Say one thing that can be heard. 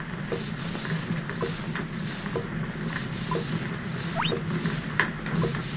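A fire crackles softly inside a stove.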